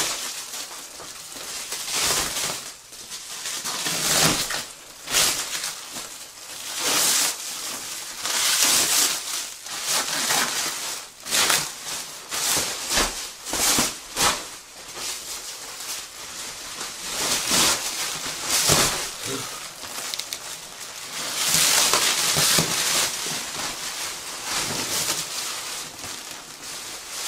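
Plastic wrapping crinkles and rustles loudly close by.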